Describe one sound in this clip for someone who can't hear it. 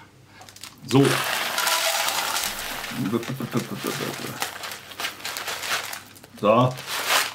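Dry oats pour and rattle into a plastic bowl.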